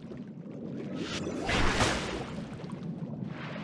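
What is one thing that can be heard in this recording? A rushing watery blast bursts out and fades.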